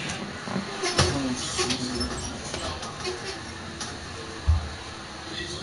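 A basketball thumps on a wooden court.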